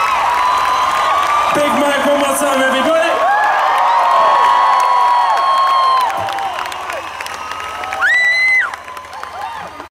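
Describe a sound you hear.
Fans in a crowd whistle shrilly, up close.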